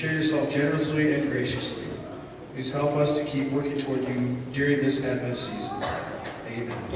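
A woman speaks through a microphone over loudspeakers in a large echoing hall.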